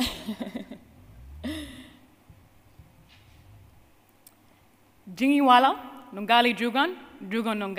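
A woman speaks into a microphone over loudspeakers in a large hall.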